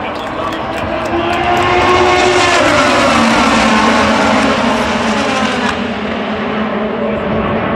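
Race car engines roar loudly as a pack of cars speeds past.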